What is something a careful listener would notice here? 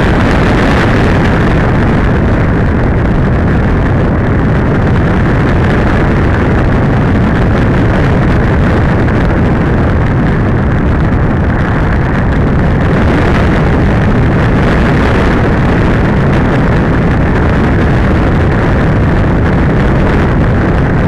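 Wind rushes and buffets loudly past a model glider in flight.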